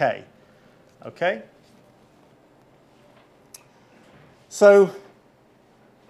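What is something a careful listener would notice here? A middle-aged man speaks in short, hesitant bursts.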